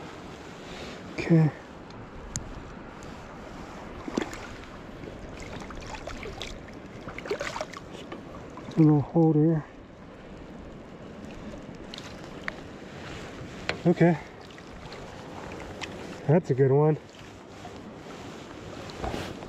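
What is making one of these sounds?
Water splashes softly as a fish moves in a net.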